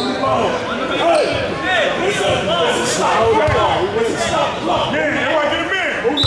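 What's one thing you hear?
A man shouts instructions.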